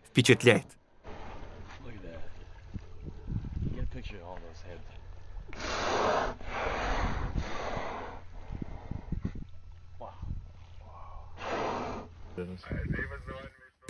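Water splashes and laps as the killer whales swim.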